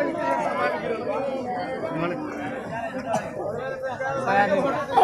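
A crowd of people talk loudly close by.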